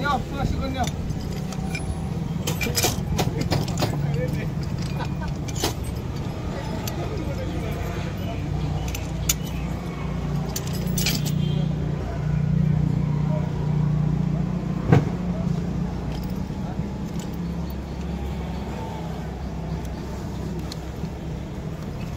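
Pliers click against metal pins.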